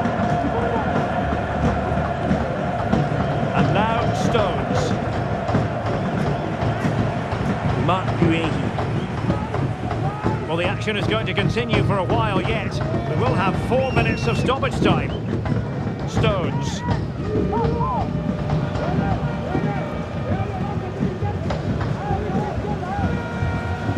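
A large stadium crowd roars and whistles steadily.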